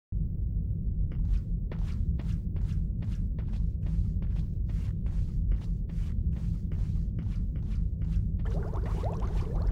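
Footsteps run on a stone floor.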